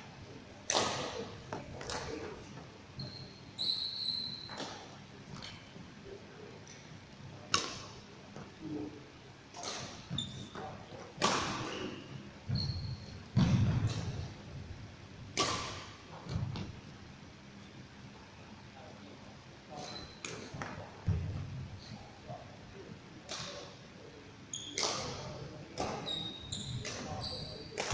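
A badminton racket strikes a shuttlecock with sharp smacks that echo in a large hall.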